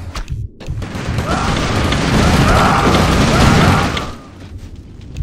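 Weapons clash and blasts roar in a noisy battle.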